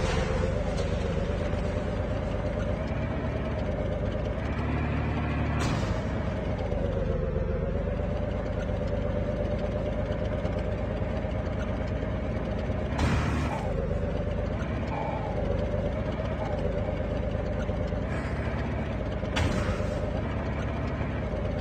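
A tank engine rumbles and drones steadily as it drives.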